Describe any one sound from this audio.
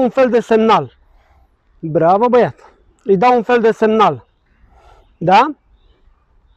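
A man speaks calmly and closely in short phrases.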